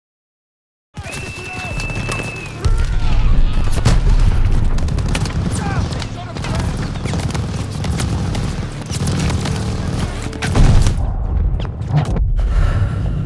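Gunfire and explosions crack and boom in rapid bursts.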